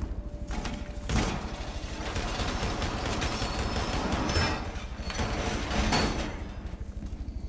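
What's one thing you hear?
Heavy metal panels clank and scrape as they slide into place.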